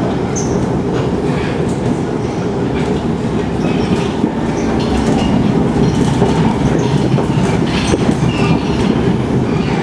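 Metal squeaks and rattles inside a moving train carriage.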